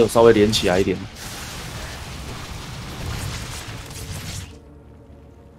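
Gunfire and blasts of a video game battle crackle steadily.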